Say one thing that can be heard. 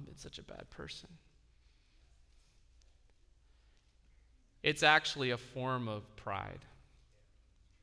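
A man speaks calmly into a microphone, with pauses.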